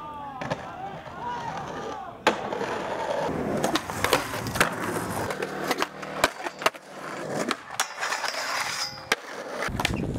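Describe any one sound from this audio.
A skateboard clacks sharply against concrete.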